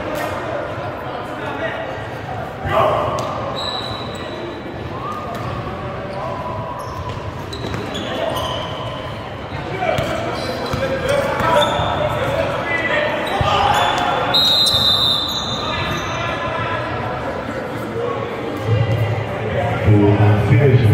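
A crowd of spectators murmurs and calls out throughout.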